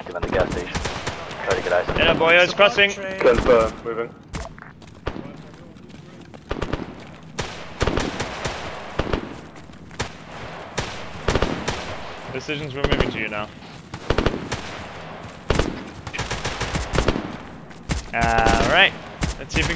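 Footsteps crunch steadily over gravel and grass.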